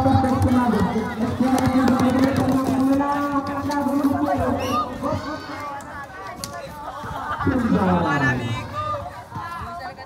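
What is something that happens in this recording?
A crowd of young people shouts and chatters outdoors.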